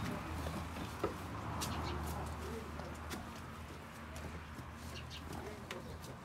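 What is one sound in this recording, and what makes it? Goats munch and rustle dry grass while eating.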